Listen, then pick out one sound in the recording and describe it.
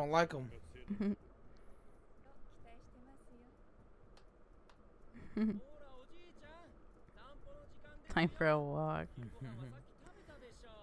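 A young man and a young woman laugh loudly close to a microphone.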